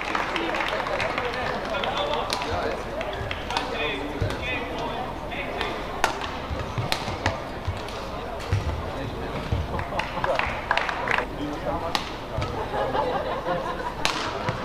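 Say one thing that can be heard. Rackets smack a shuttlecock back and forth in a fast rally.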